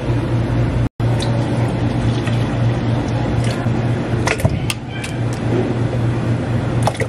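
Milk splashes into a plastic blender jug.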